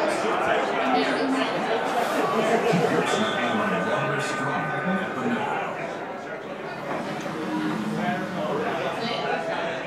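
Men chatter and talk over each other in a noisy room.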